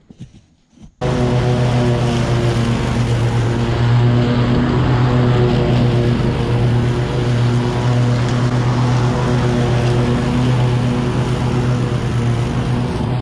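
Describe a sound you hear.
A riding mower engine runs with a steady loud drone.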